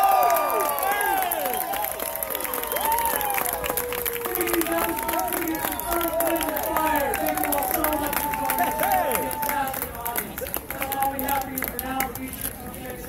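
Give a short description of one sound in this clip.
A brass band plays saxophones, trumpets and trombones in a lively tune outdoors.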